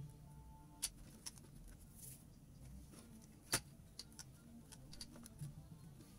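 Plastic parts snap together.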